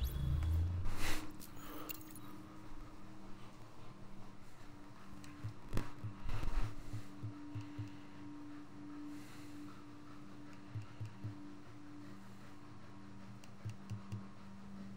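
Soft interface clicks tick now and then.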